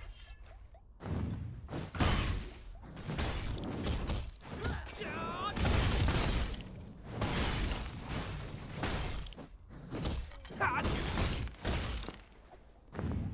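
Sword blows strike and clash in quick bursts.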